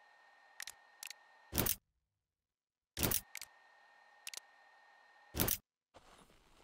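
Short electronic clicks and whooshes sound from a game menu.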